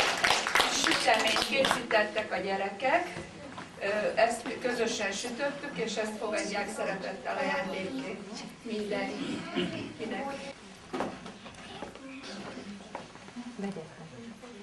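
Young children sing together nearby.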